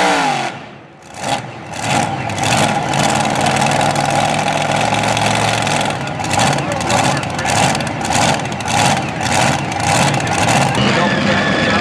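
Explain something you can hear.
A tractor engine idles roughly with uneven popping.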